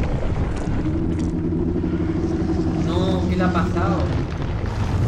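A huge beast growls with a deep, steady rumble.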